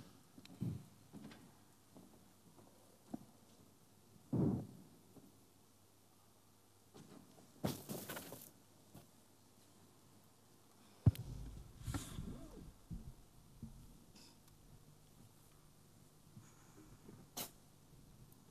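A woman makes short, breathy vocal sounds close to a microphone.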